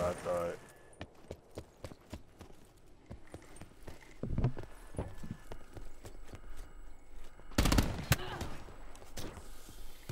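Footsteps patter on hard ground.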